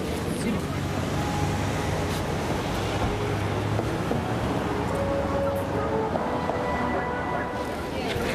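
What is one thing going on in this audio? Water splashes and churns behind a passing boat.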